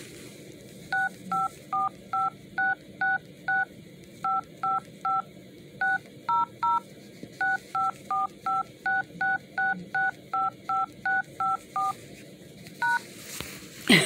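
A phone keypad beeps with short tones as numbers are dialed.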